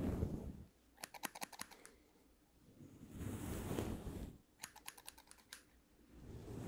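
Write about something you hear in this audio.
Scissors snip rapidly close by.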